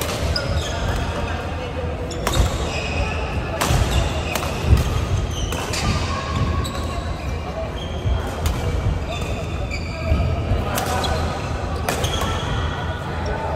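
The sound echoes through a large hall.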